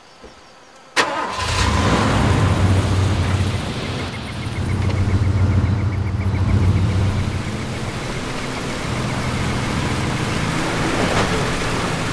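A vehicle engine starts and runs with a loud, steady rumble.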